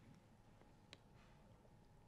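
A man sips water close to a microphone.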